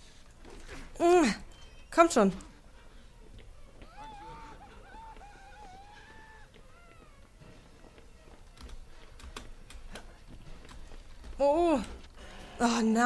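A young woman screams loudly into a close microphone.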